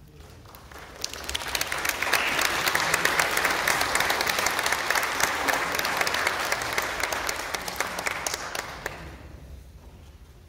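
An audience claps loudly in a large echoing hall.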